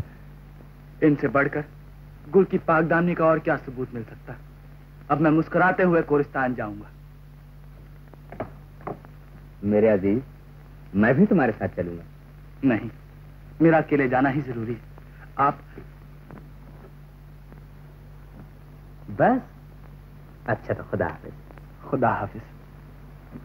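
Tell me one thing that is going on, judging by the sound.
A man speaks dramatically, calling out with feeling.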